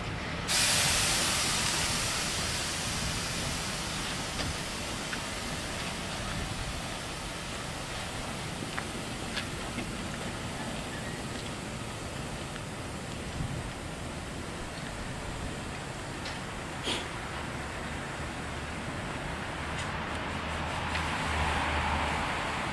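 A steam locomotive hisses loudly as it pulls slowly away.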